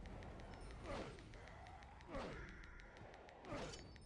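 A magic spell hums and whooshes with a rising shimmer.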